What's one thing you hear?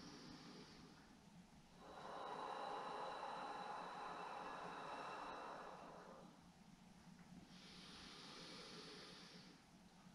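A woman breathes slowly and deeply, close by.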